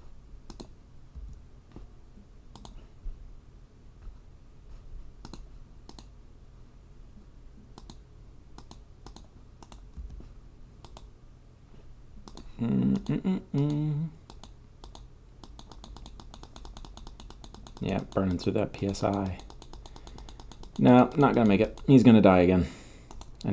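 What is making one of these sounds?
Electric zaps crackle in short bursts.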